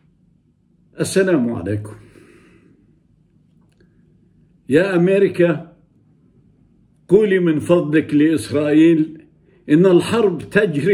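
An elderly man speaks calmly and warmly, close by, in short bursts with pauses.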